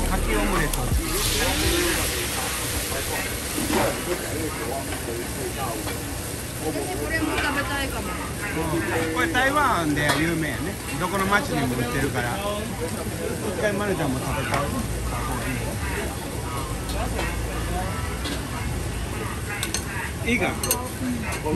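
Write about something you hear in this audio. Food sizzles on a hot griddle.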